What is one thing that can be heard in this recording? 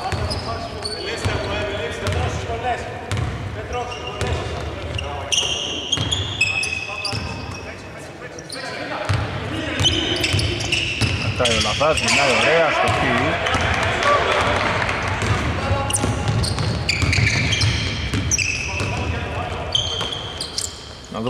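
Sneakers squeak on a hardwood court in a large echoing arena.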